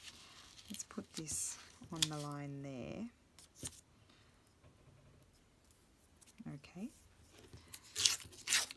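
Paper rustles and slides on a hard surface.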